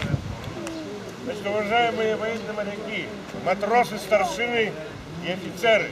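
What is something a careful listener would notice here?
An elderly man speaks loudly outdoors.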